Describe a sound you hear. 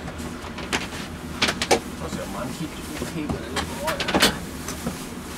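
Metal clanks and knocks close by.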